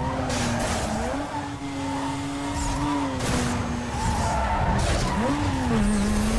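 A racing car engine roars at high revs, its pitch rising and falling with gear changes.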